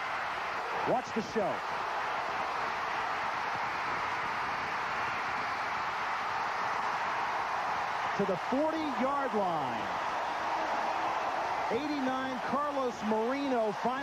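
A large crowd cheers and roars loudly in a stadium.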